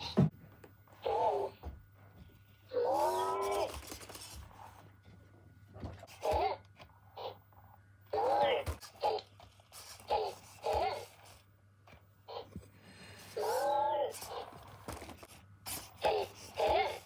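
A small toy robot chirps and beeps in short electronic bursts.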